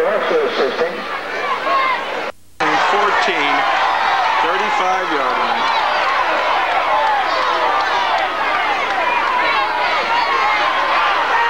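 A large crowd of spectators cheers and chatters outdoors.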